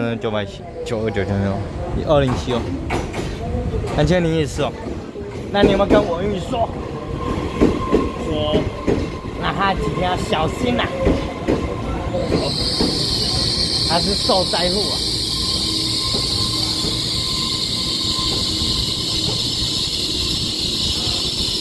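A train rushes past close by with a loud rumbling roar.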